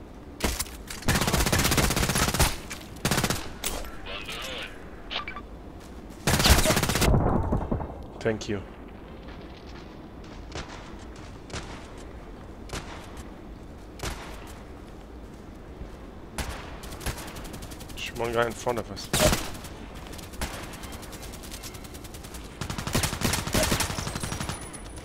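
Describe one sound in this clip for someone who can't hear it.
Rifle shots fire in quick bursts close by.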